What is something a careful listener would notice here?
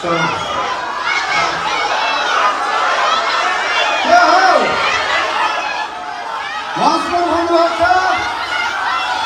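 A large crowd cheers and screams loudly in an echoing hall.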